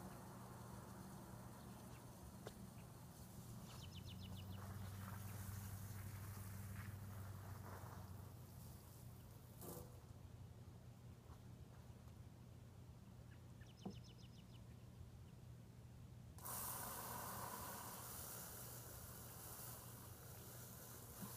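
A lawn mower engine hums steadily nearby outdoors.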